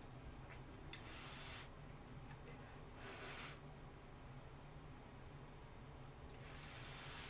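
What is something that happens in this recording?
A young woman slurps noodles loudly and close.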